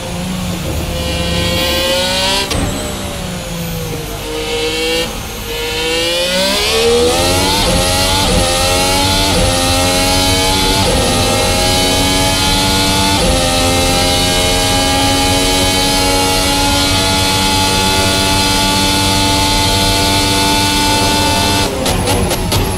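A racing car engine revs up and down through the corners, then screams as it climbs through the gears.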